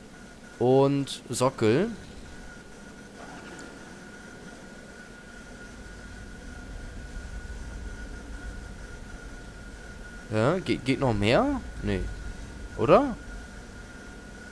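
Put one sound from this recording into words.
A magical shimmering hum rings steadily as a crystal glows.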